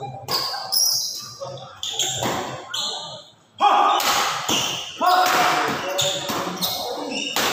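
Sports shoes squeak sharply on a wooden court floor.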